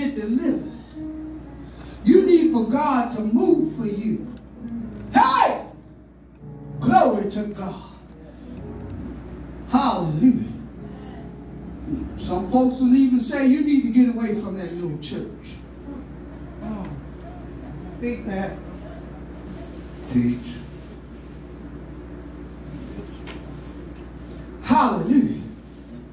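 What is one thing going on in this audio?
An elderly woman sings or preaches with feeling into a microphone, heard through loudspeakers in a small room.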